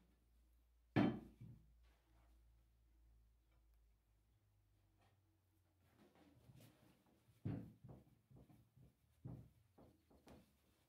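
Hands knock and bump against a carpeted wooden box.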